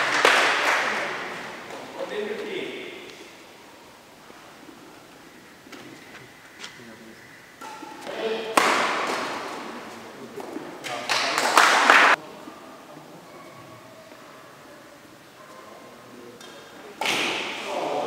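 Badminton rackets smack a shuttlecock back and forth.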